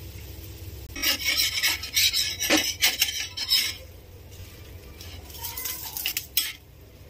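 A metal spatula scrapes across a griddle.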